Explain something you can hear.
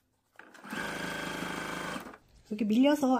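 A sewing machine runs with a steady whirring hum.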